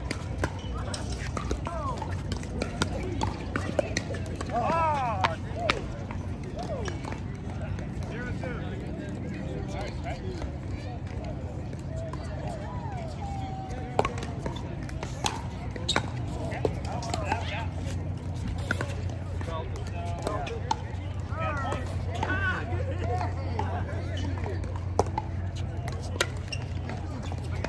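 Paddles hit a plastic ball with sharp pops, back and forth.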